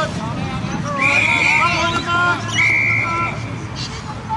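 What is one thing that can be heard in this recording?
A referee's whistle blows twice in short bursts.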